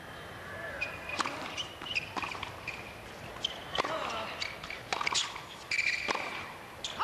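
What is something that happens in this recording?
A tennis ball is struck sharply by rackets in a rally.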